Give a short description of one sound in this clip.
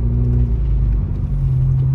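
A windshield wiper sweeps across the glass.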